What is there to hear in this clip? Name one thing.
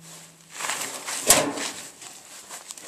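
A gloved hand rubs and scrapes across a metal drum.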